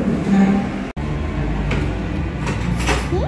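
A fork scrapes on a plate.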